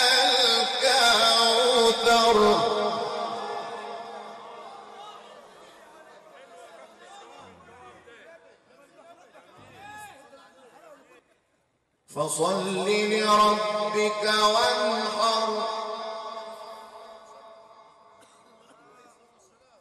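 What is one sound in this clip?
A man chants in a long, drawn-out voice through a microphone and loudspeakers, with an echo.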